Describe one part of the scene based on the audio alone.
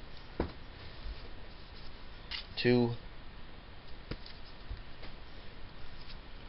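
A comic book's pages rustle as a man handles it.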